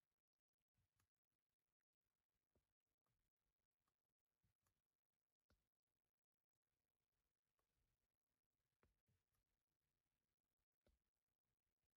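Buttons on a steering wheel click softly now and then.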